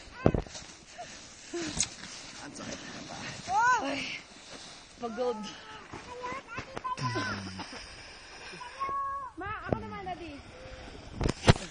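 Young people shout and laugh outdoors.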